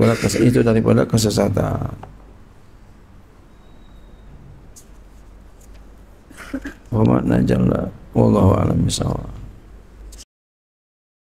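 A middle-aged man speaks into a microphone in a calm, chanting voice.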